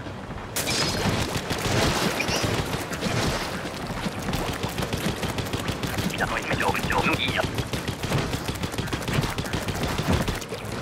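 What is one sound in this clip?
A rapid-fire toy gun shoots in quick bursts of splattering spray.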